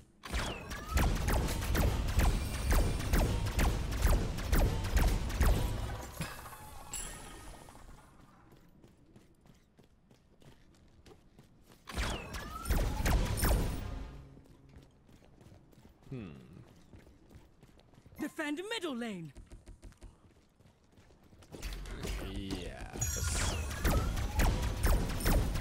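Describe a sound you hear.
Game combat effects clash and whoosh loudly.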